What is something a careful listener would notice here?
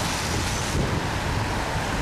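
A car drives past at close range.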